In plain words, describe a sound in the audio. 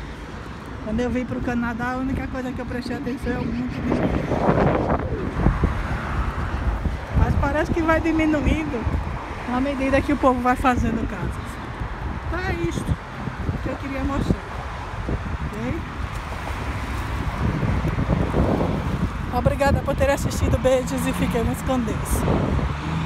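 A young woman talks casually close to the microphone.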